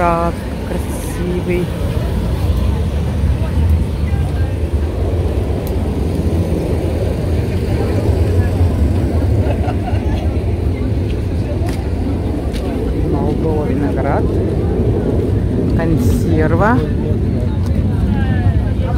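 A busy outdoor market murmurs with distant chatter and bustle.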